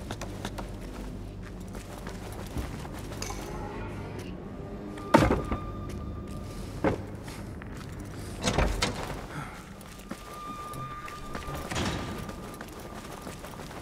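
Footsteps run on stone.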